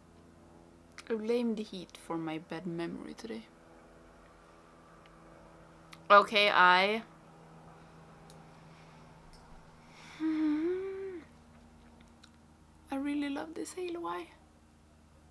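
A young woman talks calmly and close up, in short bursts with pauses.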